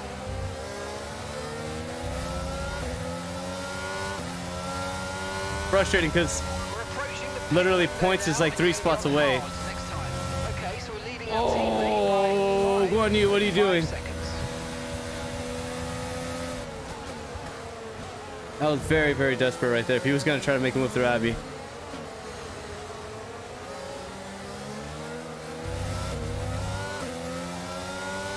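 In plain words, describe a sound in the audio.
A racing car engine whines and revs up and down through gear changes.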